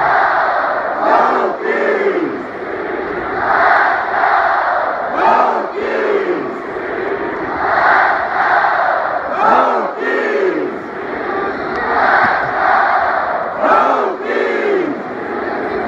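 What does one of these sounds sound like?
A huge stadium crowd chants loudly in unison.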